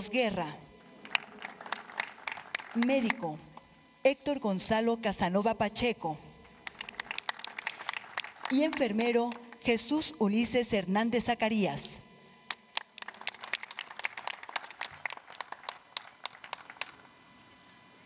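A crowd applauds outdoors with scattered clapping.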